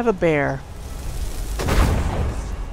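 A magical blast bursts with a loud whoosh.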